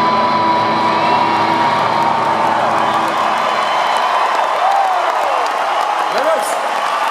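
A man sings loudly through a microphone in a large echoing hall.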